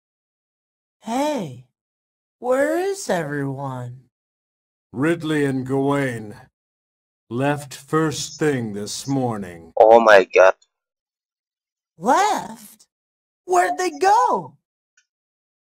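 A young man calls out and asks a question.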